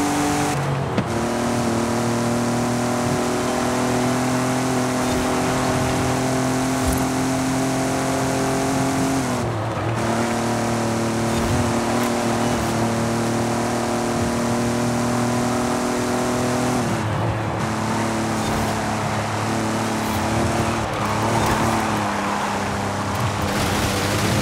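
Tyres hiss on the road at speed.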